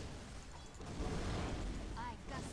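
A fiery blast whooshes loudly.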